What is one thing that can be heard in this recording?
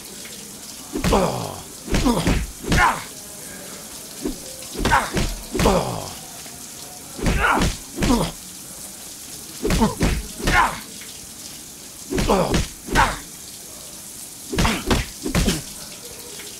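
Fists land on bodies with heavy thuds.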